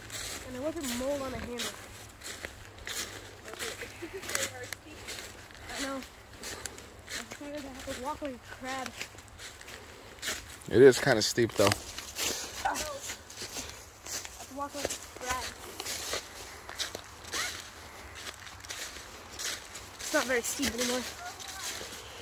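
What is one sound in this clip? Footsteps crunch and rustle through dry fallen leaves.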